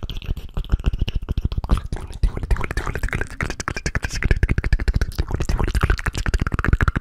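A young man makes soft mouth sounds right into a microphone.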